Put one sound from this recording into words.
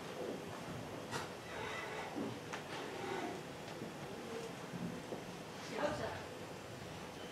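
An elderly man speaks quietly.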